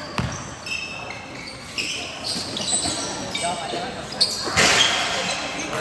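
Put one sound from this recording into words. Sneakers squeak sharply on a hard court floor.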